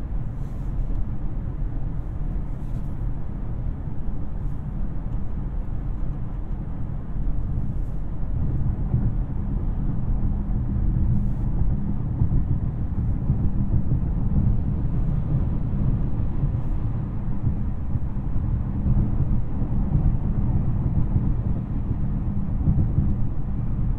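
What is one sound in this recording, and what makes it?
A luxury sedan's twin-turbo W12 engine hums low while cruising on a highway, heard from inside the cabin.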